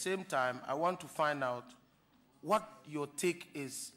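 A man speaks formally into a microphone.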